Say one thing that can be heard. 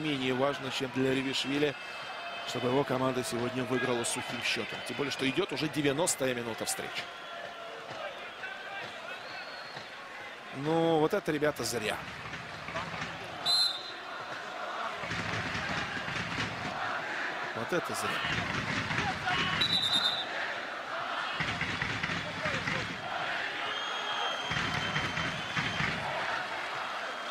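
A large crowd murmurs and cheers in an open stadium.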